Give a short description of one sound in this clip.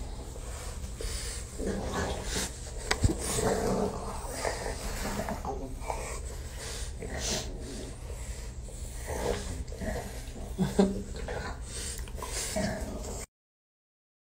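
Dogs snuffle and lick close by.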